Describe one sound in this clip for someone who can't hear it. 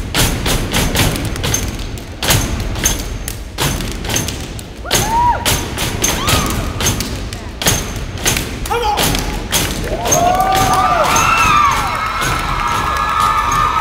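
Dancers clap their hands.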